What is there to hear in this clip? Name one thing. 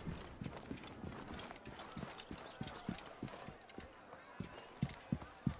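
Footsteps thud quickly on stone.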